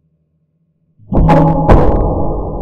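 A metal locker door bangs open.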